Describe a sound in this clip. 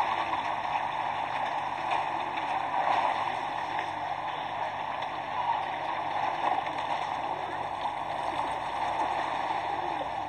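Pigeons coo and flutter.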